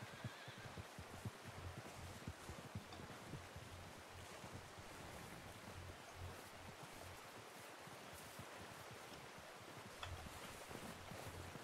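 Wind blows softly outdoors.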